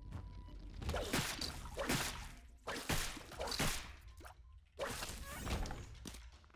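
Game sound effects of splatting shots and hits play in bursts.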